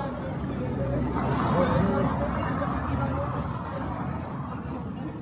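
A car drives past slowly on cobblestones.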